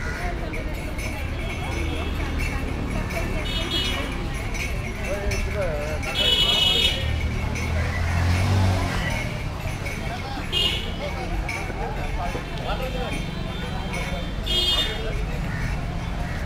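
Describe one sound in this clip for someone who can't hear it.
A motorbike engine rumbles nearby.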